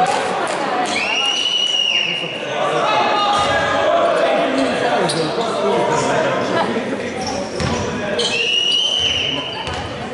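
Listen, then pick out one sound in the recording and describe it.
A referee's whistle blows sharply twice.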